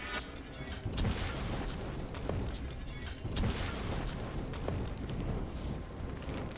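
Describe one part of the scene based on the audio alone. Sword strikes and magic blasts clash and crackle in a video game fight.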